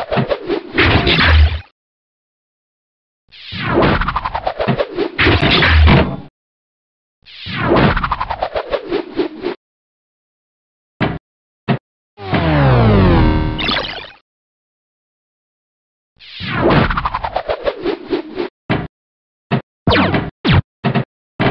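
A pinball game plays bursts of falling electronic sound effects.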